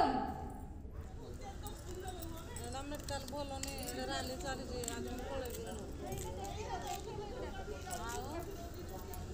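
A crowd of women and men talk and call out at once outdoors.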